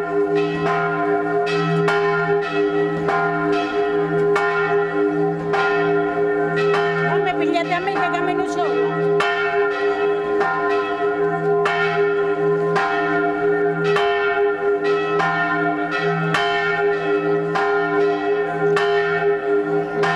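Music plays steadily through an outdoor loudspeaker.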